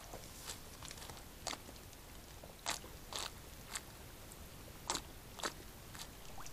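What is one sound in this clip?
An animal laps water at close range.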